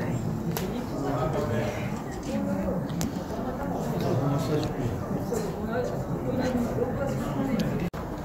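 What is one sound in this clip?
Young men chat casually nearby.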